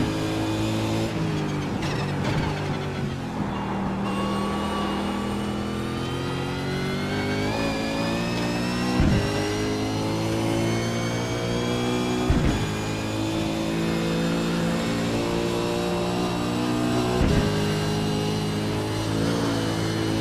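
A racing car engine roars loudly, dropping in pitch while braking and then climbing steadily.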